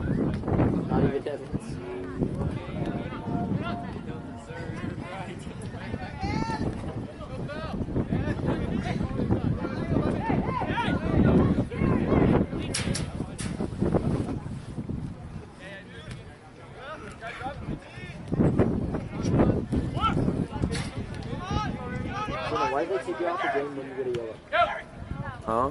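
Spectators nearby talk and shout across an open field.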